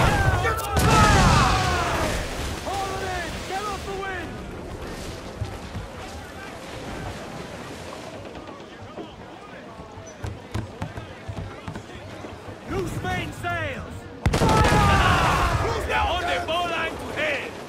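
Sea waves rush and splash against a ship's hull.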